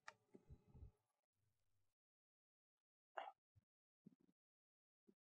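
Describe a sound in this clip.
A man lectures calmly nearby, heard through a microphone, with pauses.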